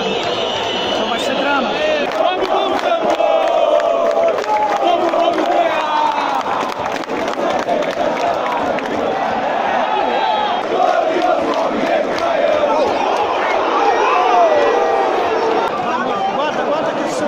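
A large stadium crowd sings and chants loudly together.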